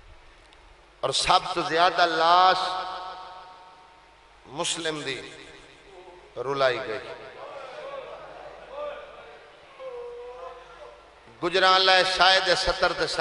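A man chants loudly and melodically into a microphone, with echo.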